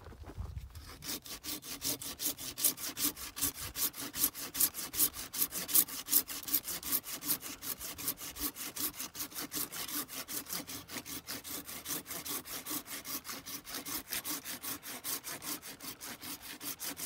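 A hand saw cuts through a branch with quick, rasping strokes.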